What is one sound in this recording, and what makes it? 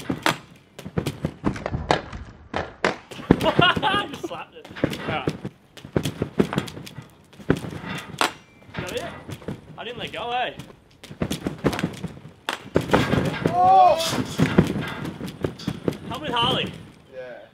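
A trampoline creaks and thumps as a rider bounces on it repeatedly.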